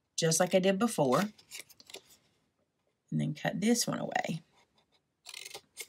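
Scissors snip through thin card.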